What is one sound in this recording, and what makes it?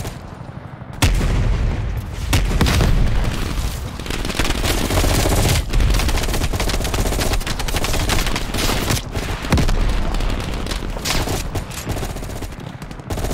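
Gunfire bursts out in loud, rapid shots.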